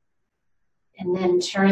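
An older woman speaks calmly and clearly.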